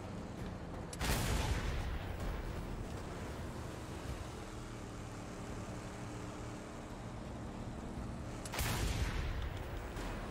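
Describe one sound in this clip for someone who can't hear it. Loud explosions boom.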